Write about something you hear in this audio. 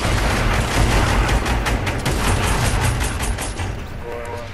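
Rapid gunshots fire in a video game.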